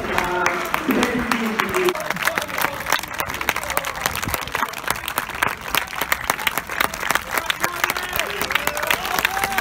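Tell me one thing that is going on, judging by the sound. A crowd applauds outdoors with many sharp claps.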